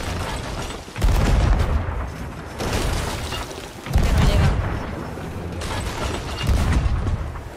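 Cannons fire with deep, heavy booms.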